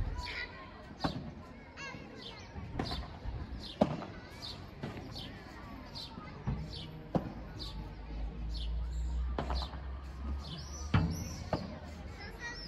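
Padel rackets strike a ball with sharp pops.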